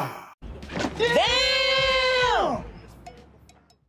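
A man cries out in a long, drawn-out yell.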